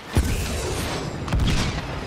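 A jetpack whooshes briefly.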